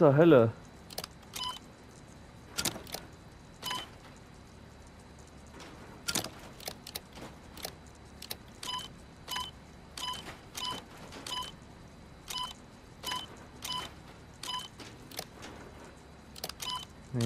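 Short electronic beeps and clicks sound as a terminal's puzzle pieces are turned.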